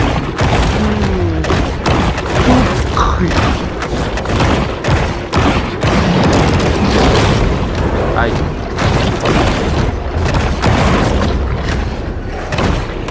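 Deep underwater rumbling and churning water fill the background.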